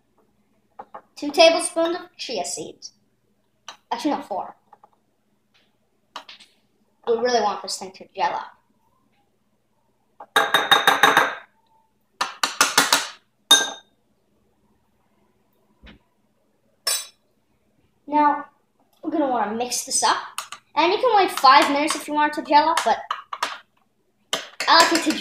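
A spoon clinks against a glass bowl while stirring.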